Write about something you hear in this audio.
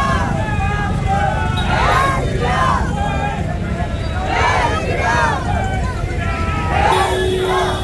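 Motorbike engines rumble at idle.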